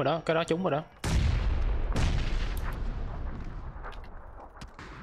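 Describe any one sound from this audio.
A gun fires loud booming shots that echo and fade.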